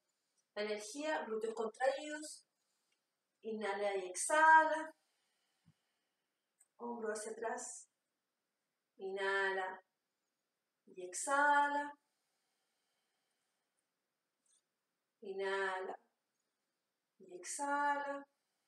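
A young woman speaks calmly and slowly in short phrases, close by.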